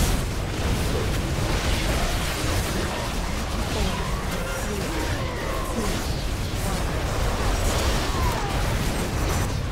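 Game combat effects crackle and clash with magic blasts and weapon hits.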